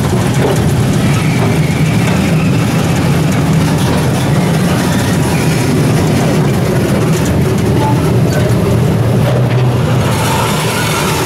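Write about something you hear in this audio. A small train rumbles and rattles along its track.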